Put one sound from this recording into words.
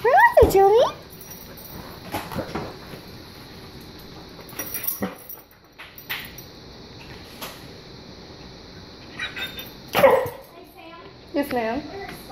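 A dog whines and yelps excitedly.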